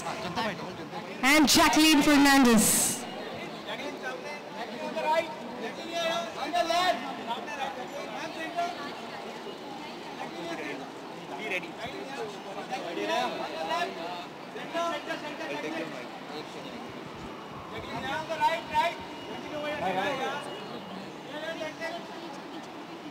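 A crowd of men call out and shout nearby.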